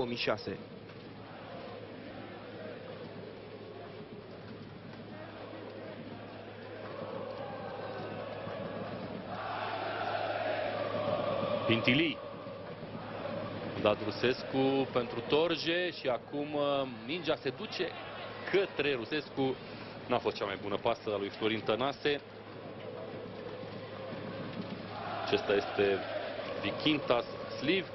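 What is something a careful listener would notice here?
A large stadium crowd murmurs and cheers outdoors, swelling at times.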